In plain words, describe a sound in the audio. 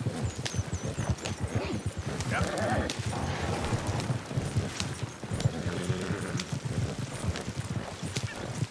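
A wooden wagon rattles and creaks.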